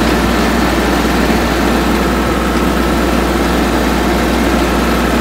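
A tractor diesel engine rumbles steadily up close.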